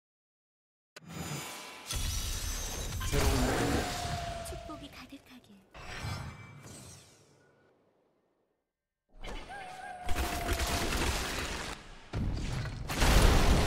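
A loud magical blast whooshes and crackles in bursts.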